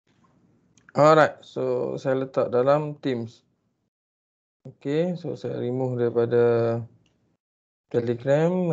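A man lectures over an online call.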